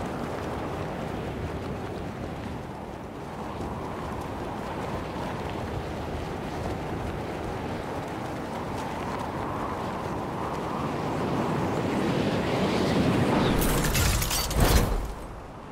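Wind rushes steadily past during a fast fall through the air.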